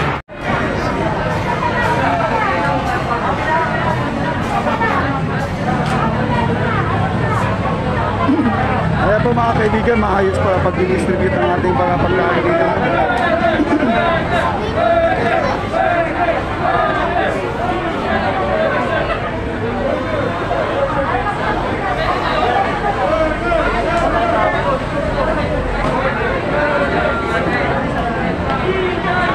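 A large crowd of men and women chatters and shouts loudly outdoors.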